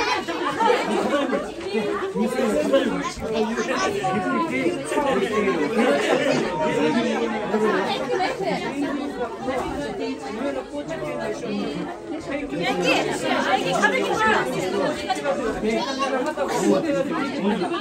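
Many adults and children chatter and talk over one another close by.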